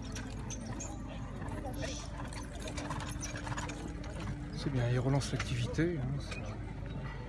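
Horses' hooves thud on grass as a carriage team trots past.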